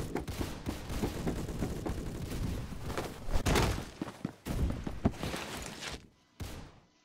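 Footsteps clang quickly on a metal walkway.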